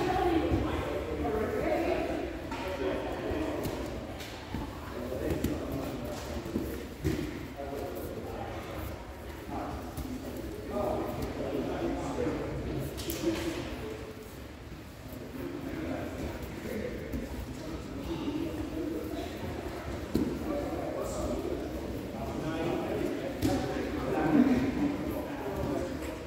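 People chatter in a large echoing hall.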